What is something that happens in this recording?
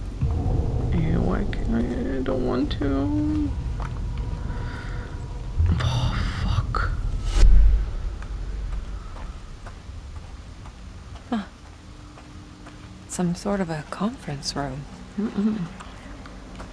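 A young woman talks calmly into a microphone, close by.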